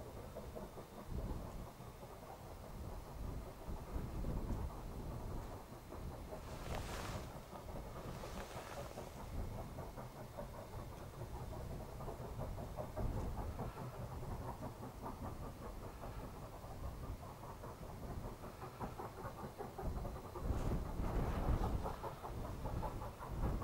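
A distant steam locomotive chuffs rhythmically as it labours uphill.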